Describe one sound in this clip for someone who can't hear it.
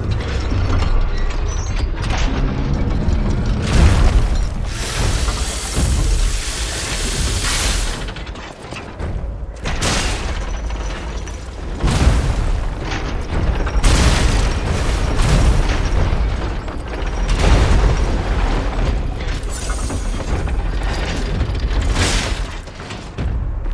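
Heavy iron feet thud and stomp on the ground.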